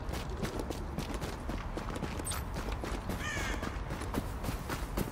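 Footsteps crunch through snow at a walking pace.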